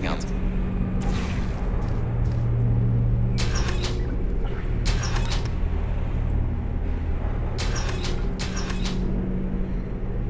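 A portal gun fires with sharp electric zaps.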